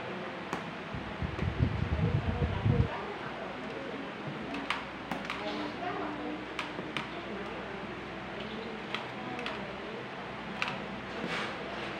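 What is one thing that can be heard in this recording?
A thin plastic wrapper crinkles in someone's hands.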